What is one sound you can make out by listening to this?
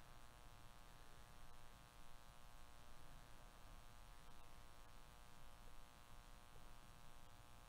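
Stiff trading cards slide and rustle against each other as they are flipped through by hand.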